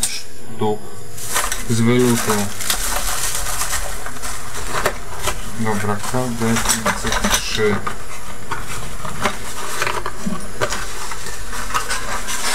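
Cardboard rustles and scrapes as a box is handled.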